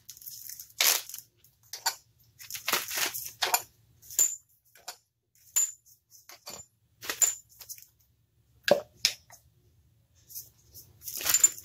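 Plastic engine parts click and rattle under hands.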